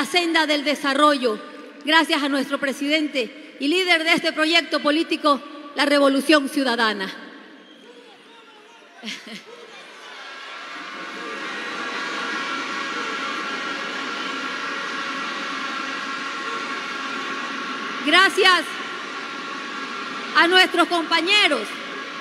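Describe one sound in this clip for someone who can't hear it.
A woman speaks forcefully into a microphone over loudspeakers.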